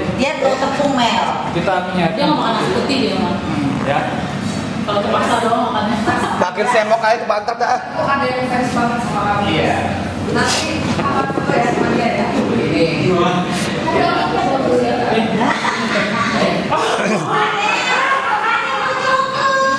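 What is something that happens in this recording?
Several people chatter in the background.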